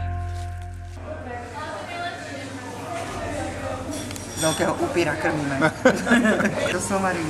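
A young boy talks and chatters nearby.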